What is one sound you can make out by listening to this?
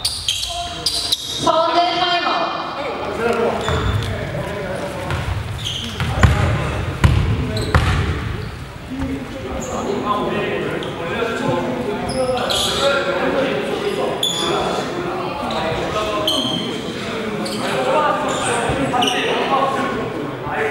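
Young men talk and call out across a large echoing gym.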